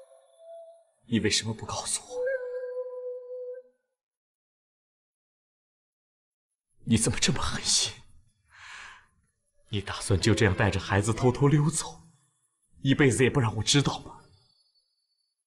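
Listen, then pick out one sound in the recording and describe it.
A young man speaks quietly and sorrowfully, close by.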